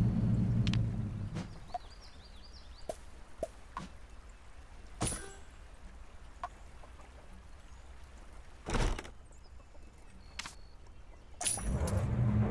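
Short game button clicks sound now and then.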